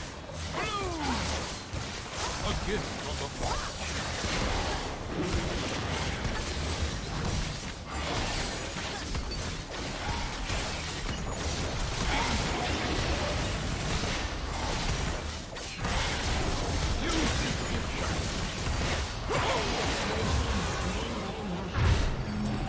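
Fantasy game battle effects whoosh, clash and crackle rapidly.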